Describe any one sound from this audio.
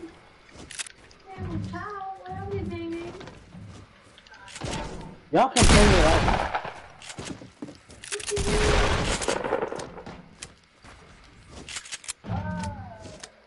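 Wooden panels snap into place with quick, hollow clacks.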